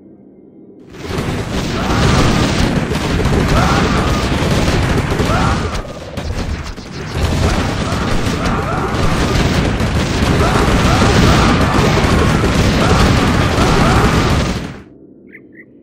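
A loud battle roars with clashing weapons and blasts.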